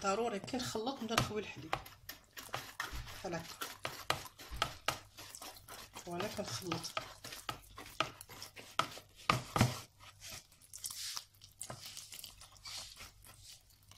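A whisk scrapes and clatters quickly against a plastic bowl.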